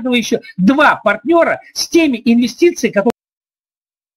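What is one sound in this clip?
An elderly man speaks calmly over an online call.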